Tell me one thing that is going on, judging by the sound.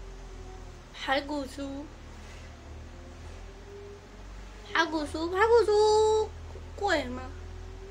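A young woman speaks playfully up close.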